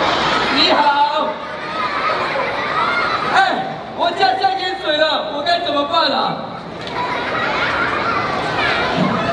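A large crowd of children and adults chatters and murmurs in a big echoing hall.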